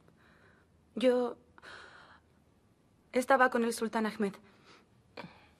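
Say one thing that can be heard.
A young woman speaks in a low, tense voice close by.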